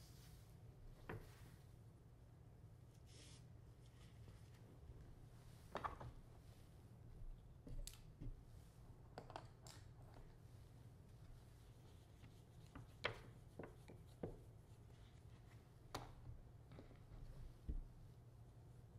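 Small items click and rustle softly as hands handle them.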